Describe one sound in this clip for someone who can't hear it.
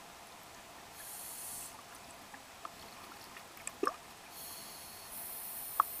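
A scuba diver exhales through a regulator underwater, bubbles bursting out in a rush.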